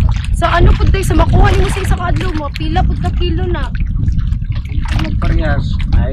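A young woman asks questions calmly up close.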